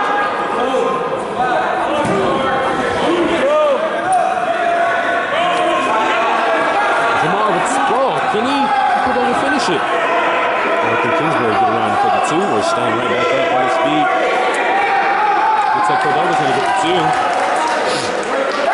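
A crowd of spectators shouts and cheers throughout in a large echoing gym.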